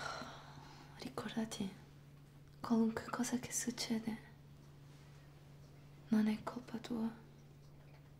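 An elderly woman speaks softly and gravely, close by.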